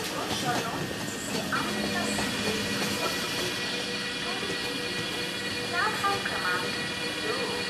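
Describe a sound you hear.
A diesel locomotive engine hums as a train pulls in slowly.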